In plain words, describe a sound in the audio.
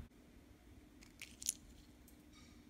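Pistachio shells rattle in a hand.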